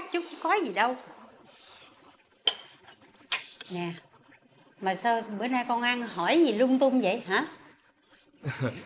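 A middle-aged woman speaks pleadingly, close by.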